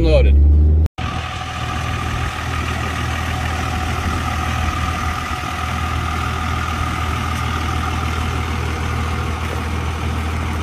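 A diesel pickup idles.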